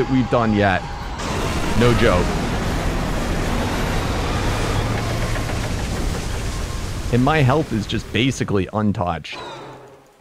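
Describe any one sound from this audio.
A dragon lets out loud, wavering roars.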